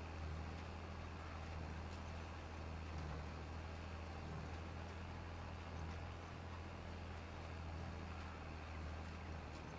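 A seed drill rattles and hisses as it is pulled across soil.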